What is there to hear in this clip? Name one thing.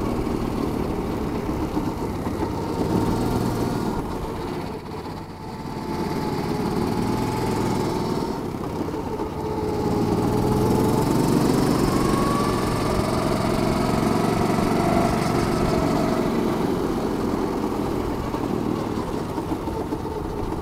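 A kart engine buzzes loudly up close, its pitch rising and falling as it speeds up and slows down.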